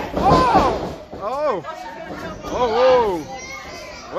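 A wrestler's body thuds heavily onto the ring mat.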